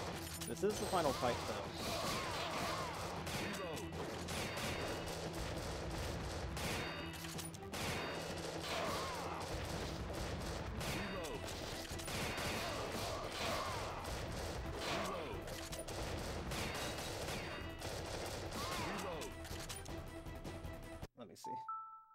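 Rapid gunfire and explosions boom from a video game.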